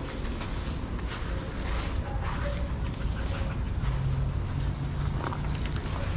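Dogs pant heavily.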